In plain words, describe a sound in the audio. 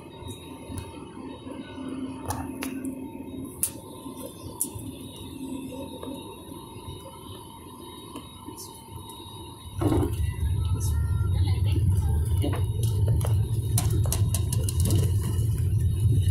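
Jet engines hum steadily from inside an aircraft cabin, then suddenly swell into a loud, deep roar.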